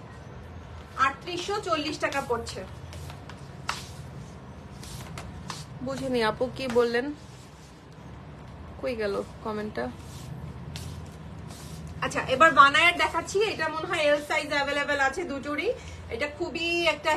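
A young woman speaks with animation close to the microphone.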